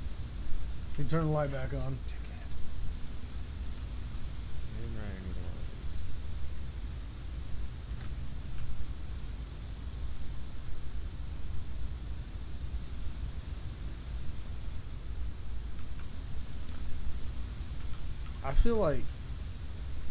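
A man speaks briefly into a microphone, close up, in short bursts.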